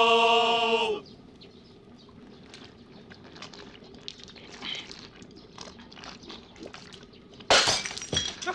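Men slurp drink from bowls.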